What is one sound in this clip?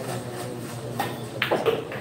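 A cue stick strikes a pool ball with a sharp click.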